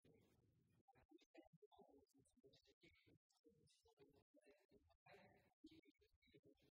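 A woman speaks formally into a microphone, reading out.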